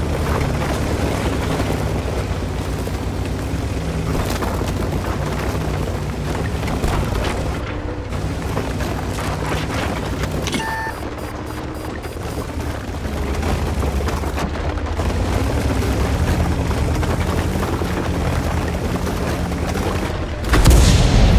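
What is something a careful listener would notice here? A heavy tank engine rumbles low and steadily.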